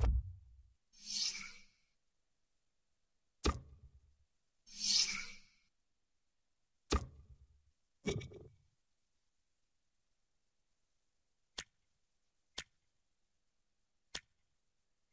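Short electronic whooshes and clicks sound as a game menu changes.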